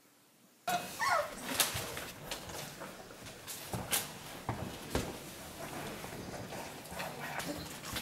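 Puppies suckle with wet smacking sounds.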